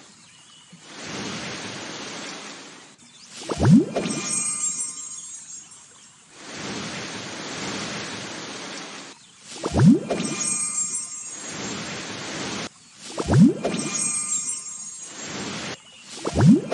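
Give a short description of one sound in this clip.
Cartoon rain patters down softly in short bursts.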